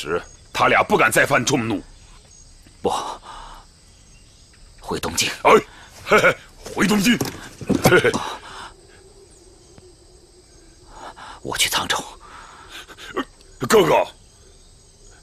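A man speaks tensely and firmly, close by.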